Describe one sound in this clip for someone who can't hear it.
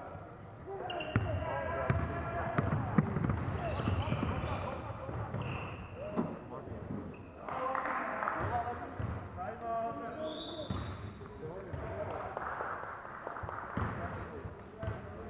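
Players call out and shout across the court.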